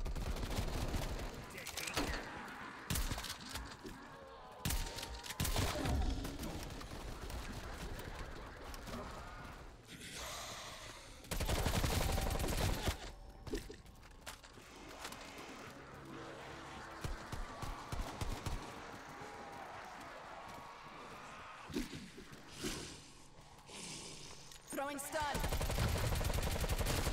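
A woman talks with animation into a microphone.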